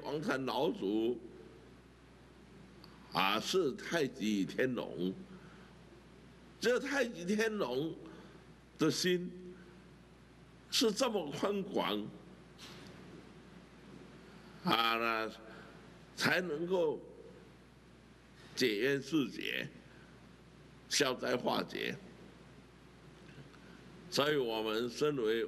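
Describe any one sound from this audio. An elderly man speaks forcefully into a microphone in short bursts with pauses.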